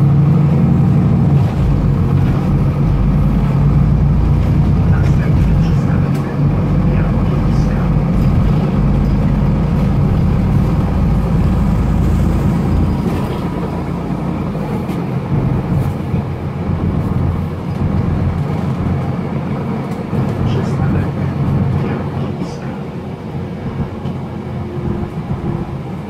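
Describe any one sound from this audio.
A bus engine rumbles low and steady, loudest at first and easing off later.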